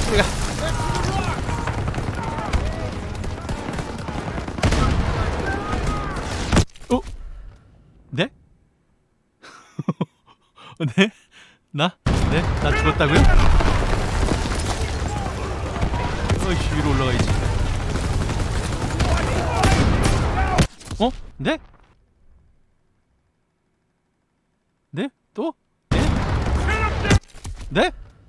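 Gunfire and explosions crash loudly in a battle.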